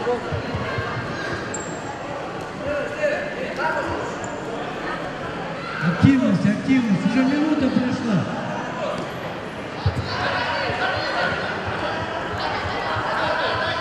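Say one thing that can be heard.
A crowd of children chatters in a large echoing hall.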